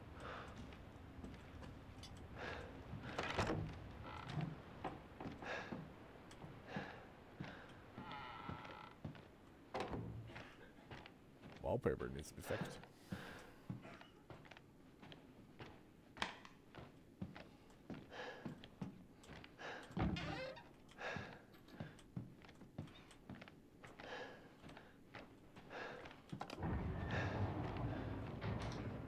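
Footsteps creak on wooden floorboards.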